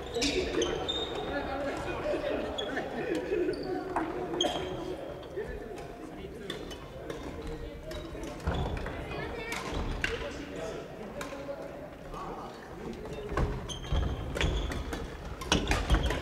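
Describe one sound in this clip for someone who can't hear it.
Shoes squeak sharply on a wooden floor in a large echoing hall.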